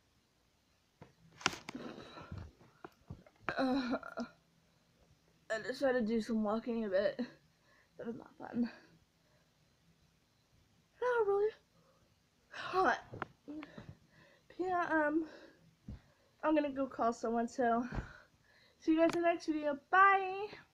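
A young girl talks with animation close to a microphone, in short bursts with pauses.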